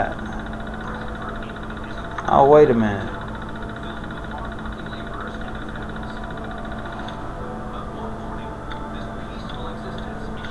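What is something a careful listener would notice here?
An old computer terminal hums steadily.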